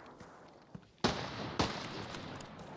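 A rifle shot cracks loudly, twice.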